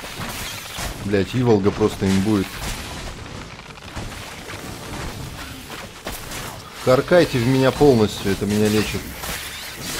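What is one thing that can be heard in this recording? A sword slashes and strikes a monster.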